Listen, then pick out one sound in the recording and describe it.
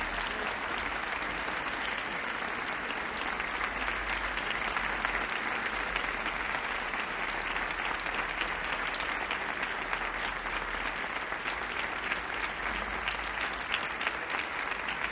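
A large audience applauds outdoors.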